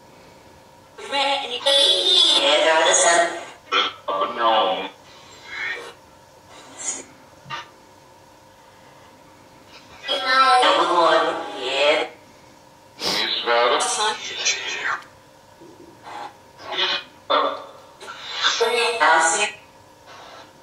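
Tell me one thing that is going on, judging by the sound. A man speaks in a low, hushed voice close by, in short bursts.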